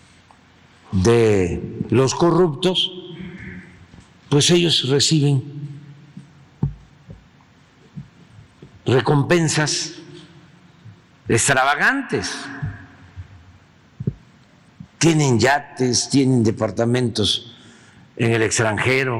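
An elderly man speaks with emphasis into a microphone, in short bursts with pauses.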